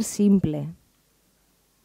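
A woman speaks briefly and clearly.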